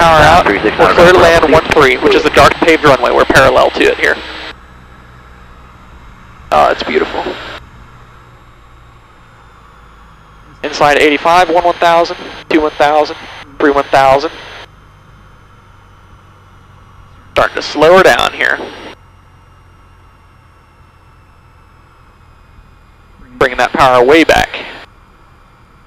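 A man speaks over a headset radio in short bursts.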